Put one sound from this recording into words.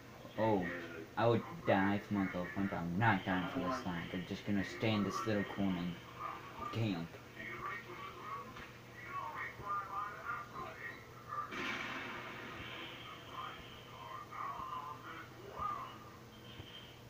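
Game sound effects play through a television's speakers.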